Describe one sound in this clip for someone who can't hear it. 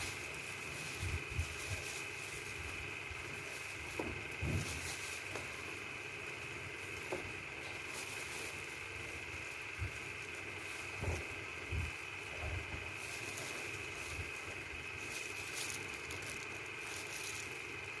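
A pastry brush swishes softly across bread.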